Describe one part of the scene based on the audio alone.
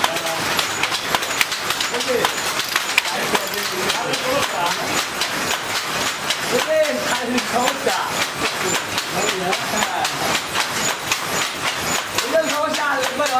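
A handloom clacks and knocks in a quick, steady rhythm.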